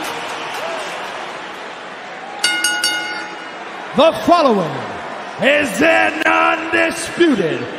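A large crowd cheers and murmurs in a huge echoing arena.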